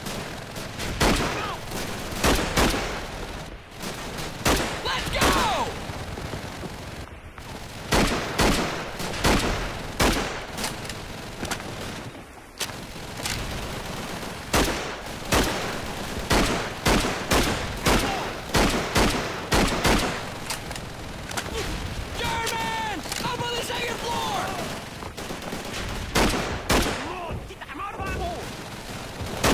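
Shotgun blasts ring out again and again.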